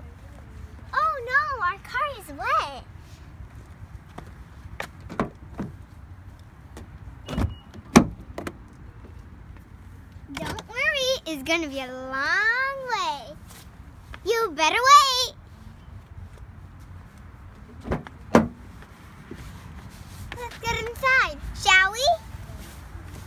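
A young girl talks brightly, close by.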